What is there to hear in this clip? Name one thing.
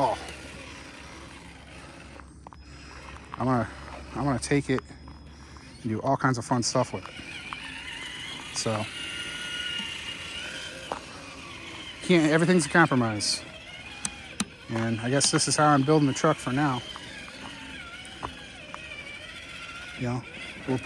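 A small electric motor whines.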